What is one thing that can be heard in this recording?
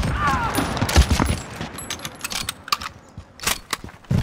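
A rifle bolt clicks and clacks as it is worked.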